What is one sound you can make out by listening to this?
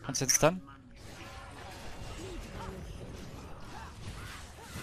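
Magic blasts burst and crackle in a fantasy game battle.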